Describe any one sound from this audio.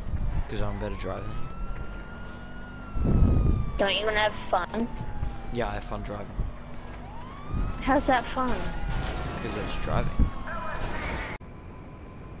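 A police siren wails up and down nearby.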